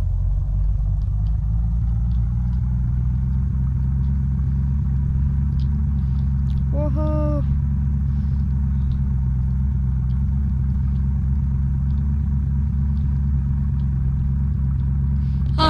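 A small engine hums steadily as a vehicle drives along.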